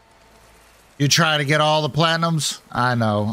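An older man speaks with animation, close to a microphone.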